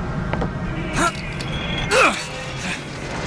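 A metal hook clangs onto a rail.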